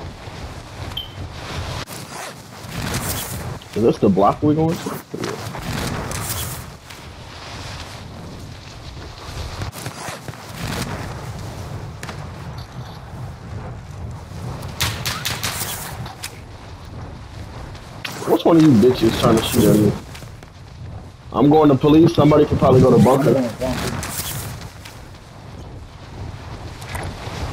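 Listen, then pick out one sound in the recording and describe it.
Wind rushes steadily past during a fast freefall.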